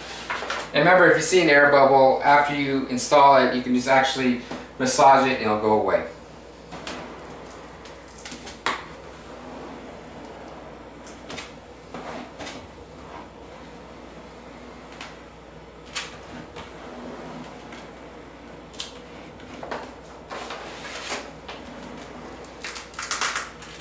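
A squeegee scrapes and squeaks across plastic film.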